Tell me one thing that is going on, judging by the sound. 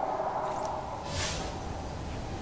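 A bright shimmering whoosh sounds briefly.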